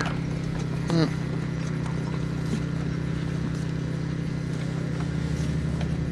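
Horses' hooves thud on grass as a carriage trots past.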